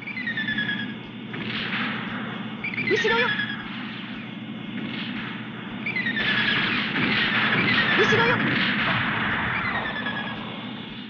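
Video game thrusters roar.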